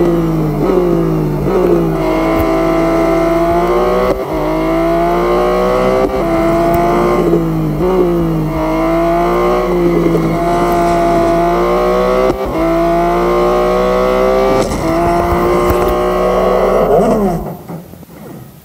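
A racing car engine roars, revving up through the gears again and again, then winds down.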